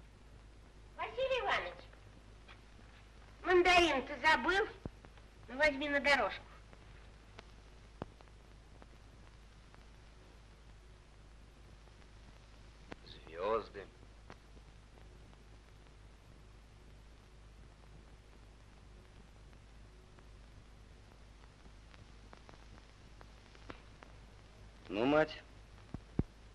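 A woman speaks in short, emotional bursts.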